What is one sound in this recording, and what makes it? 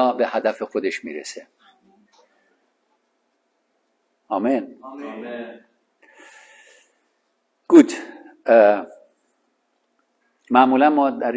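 A middle-aged man speaks calmly through a microphone, with pauses.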